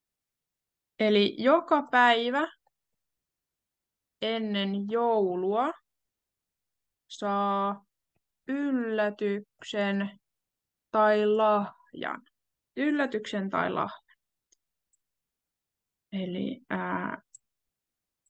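A young woman speaks calmly in short phrases, heard close through a microphone.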